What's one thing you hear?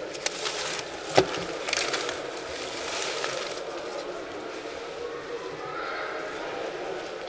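Paper slips rustle as a hand rummages through them.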